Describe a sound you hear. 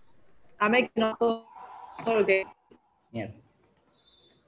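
A young woman speaks animatedly over an online call.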